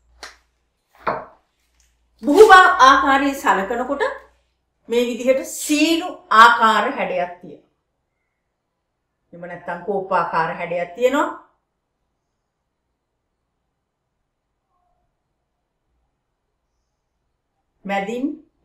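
A middle-aged woman speaks calmly, as if explaining, close by.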